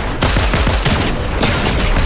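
A video game character fires a gun in quick bursts.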